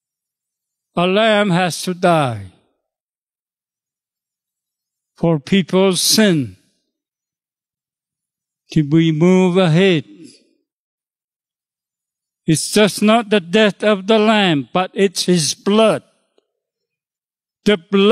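An elderly man speaks into a microphone in short, emphatic phrases with pauses between them.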